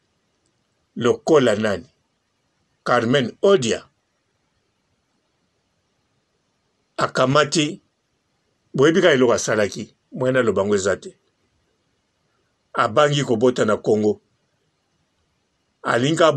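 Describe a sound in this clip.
A man speaks calmly in short bursts close to a microphone.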